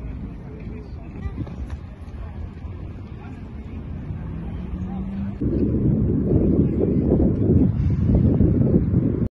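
Wind buffets the microphone outdoors, growing stronger.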